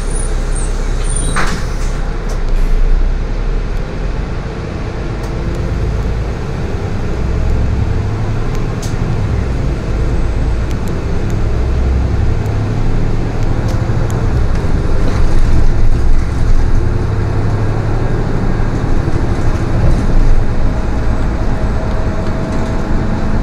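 A bus engine rumbles steadily as the bus drives along.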